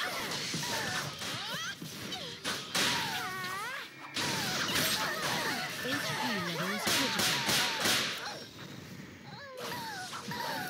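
Magic spells crackle and burst in quick succession.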